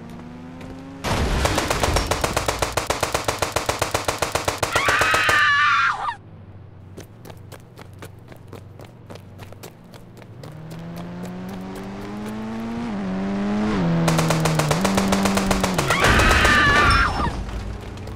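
An assault rifle fires in rapid bursts.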